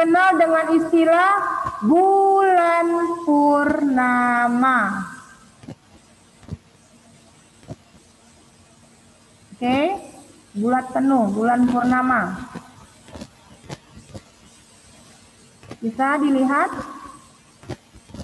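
A young woman speaks calmly over an online call, in short phrases with pauses.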